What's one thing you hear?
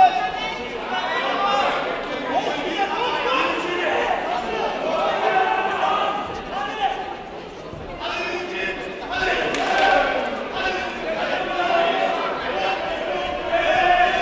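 Several men shout and call out in a large echoing hall.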